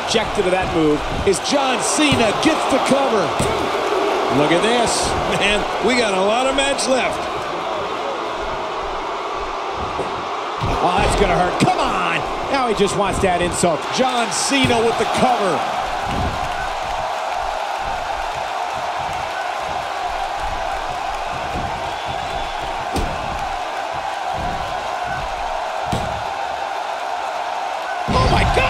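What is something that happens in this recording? A large crowd roars steadily in a big arena.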